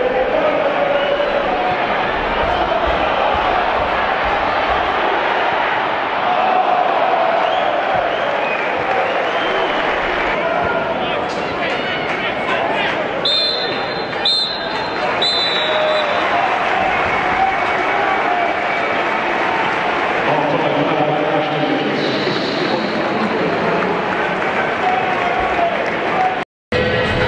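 A large stadium crowd cheers and chants loudly throughout.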